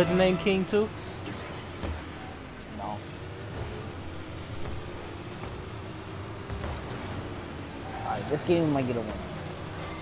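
A car engine revs up as a car speeds off.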